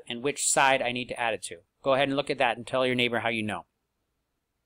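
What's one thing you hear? A man speaks calmly and closely into a microphone, as if over an online call.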